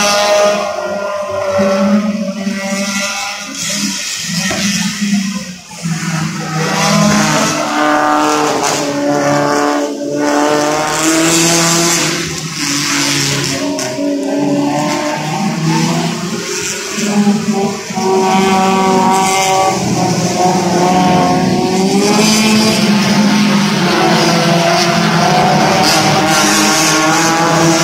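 Racing car engines roar and whine from a distance, growing louder as a pack of cars passes.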